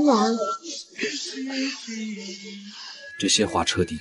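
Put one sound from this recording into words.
A middle-aged woman speaks tearfully close by.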